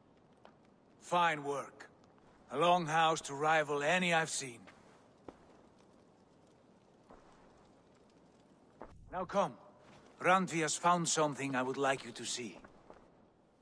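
A man speaks calmly in a deep voice, close by.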